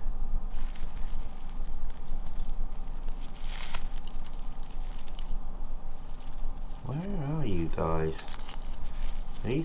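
Dry leaves rustle and crackle as a hand handles them.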